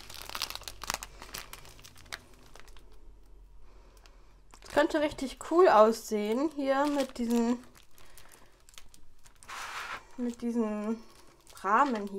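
A plastic bag of small beads crinkles in hands.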